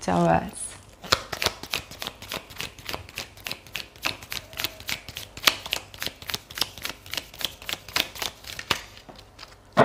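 Playing cards are shuffled with quick, rapid clicks.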